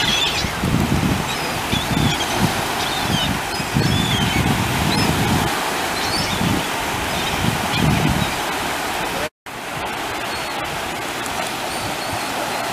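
Sea waves wash and churn.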